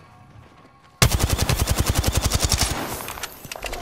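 A rapid burst of automatic gunfire rattles.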